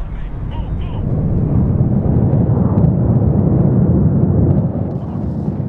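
An explosion booms and rumbles loudly.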